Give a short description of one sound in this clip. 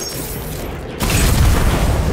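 An energy weapon fires in a video game.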